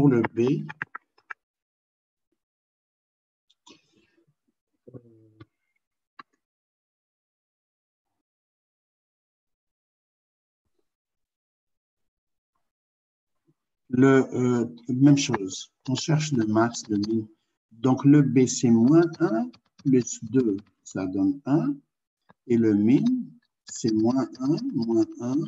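A man explains calmly over an online call.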